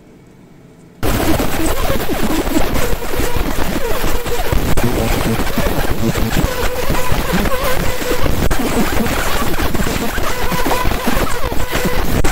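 A laser engraver hisses and crackles as it burns into pottery.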